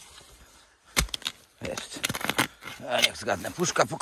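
A shovel scrapes and digs into leaf litter and soil.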